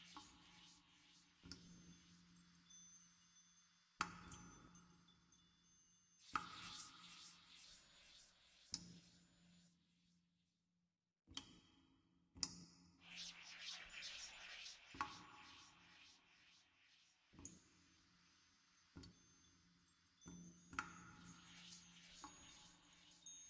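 A harp plays a gentle melody with plucked notes.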